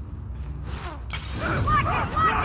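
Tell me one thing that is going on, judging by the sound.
A glass bottle smashes on the floor.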